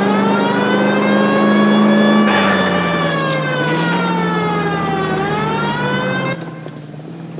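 A car engine hums loudly, its pitch rising and falling as it drives and turns.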